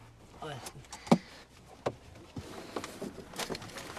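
A man speaks quietly and hesitantly, close by.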